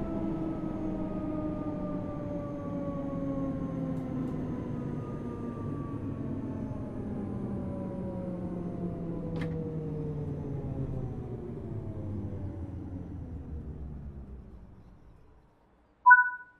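A train's electric motors whine and fall steadily in pitch as the train slows to a stop.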